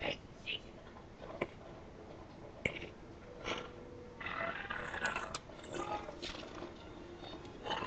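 A cat's paw taps and scrapes against a mug.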